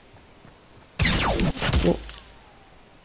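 Gunshots fire in rapid bursts in a video game.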